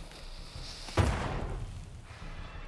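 Weapons strike in a fight with a heavy thud.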